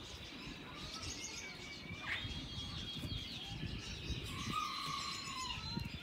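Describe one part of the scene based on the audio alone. A bird flaps its wings briefly.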